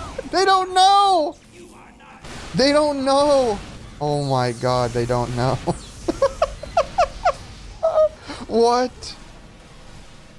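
A man laughs loudly into a close microphone.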